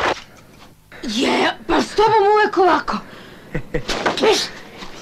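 A young man laughs and talks cheerfully.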